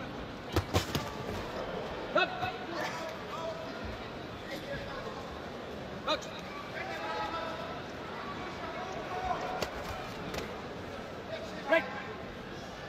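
Boxing gloves thump against a body.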